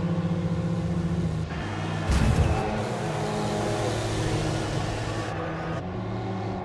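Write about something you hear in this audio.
A racing truck's engine roars at full throttle.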